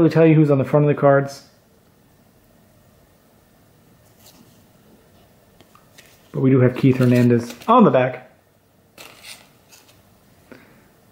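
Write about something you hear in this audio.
Cardboard trading cards rustle and slide against each other in someone's hands.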